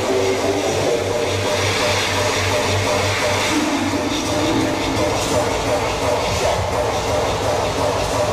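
A live band plays loud rock music through loudspeakers.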